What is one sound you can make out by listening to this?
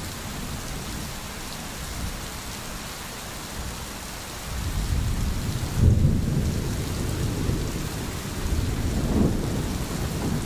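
A stream babbles and gurgles.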